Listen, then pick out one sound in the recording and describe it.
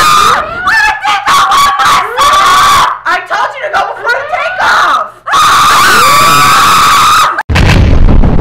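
A young woman shouts and laughs close by.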